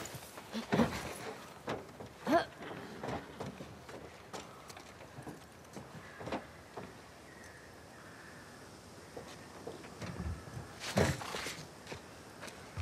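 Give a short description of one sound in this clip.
Clothes and gear scuff and thud as someone climbs over a ledge.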